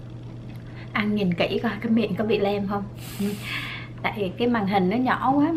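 A woman talks with animation close to a microphone.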